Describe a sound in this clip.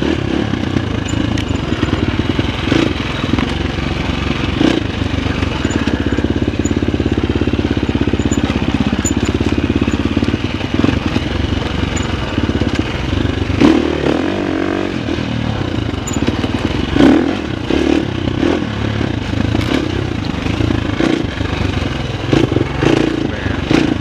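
A dirt bike engine buzzes and revs up close.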